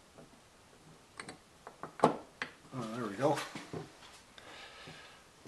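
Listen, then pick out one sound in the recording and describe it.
Small metal parts click and clatter as hands handle them.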